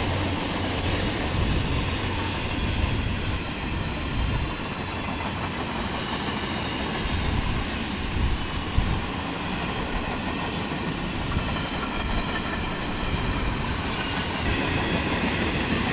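Heavy freight wagons clatter and rumble over the rails.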